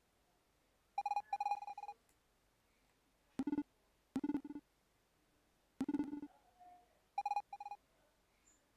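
Short electronic chirping blips sound in quick bursts.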